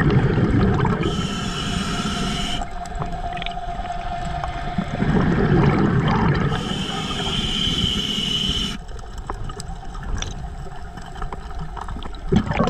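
Water rumbles and swirls, heard muffled underwater.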